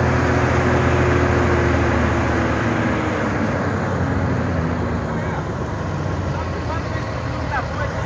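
A heavy diesel truck drives by on a dirt road.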